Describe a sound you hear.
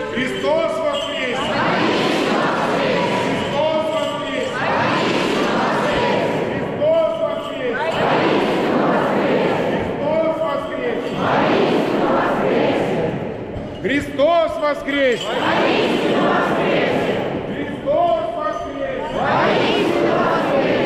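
A large crowd of men and women shouts back in unison, again and again.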